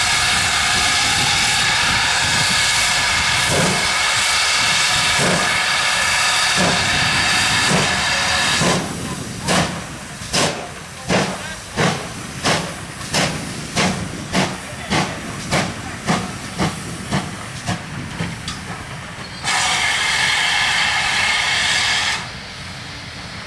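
Railway carriages rumble along the track.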